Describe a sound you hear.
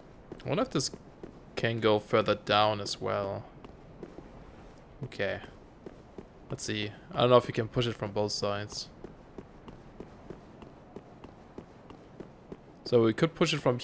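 Armoured footsteps clatter on stone.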